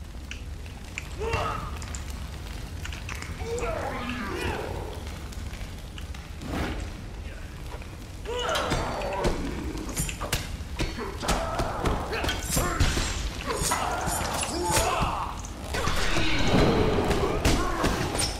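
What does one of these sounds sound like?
Swords clash and strike repeatedly in a fight.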